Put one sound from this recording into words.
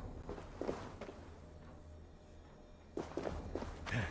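Footsteps crunch on grass and stony ground.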